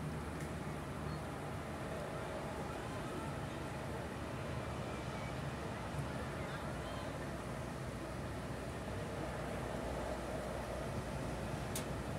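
Distant footballers shout to each other across an open field.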